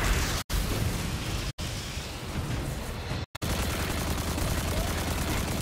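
Sci-fi energy weapons fire in loud, crackling blasts.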